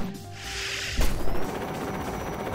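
A blaster fires a loud burst.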